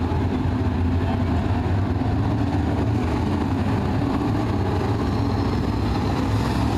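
Race car engines roar loudly as cars speed by outdoors.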